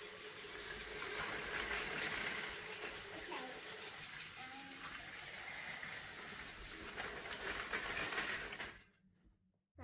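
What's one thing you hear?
Toy trains whir along plastic tracks.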